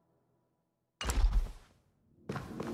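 A magical whooshing swell plays.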